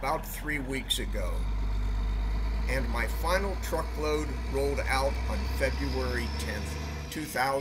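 A tractor engine rumbles close by.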